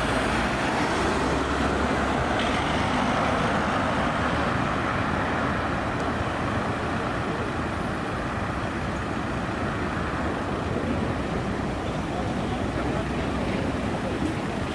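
A car drives along an asphalt road.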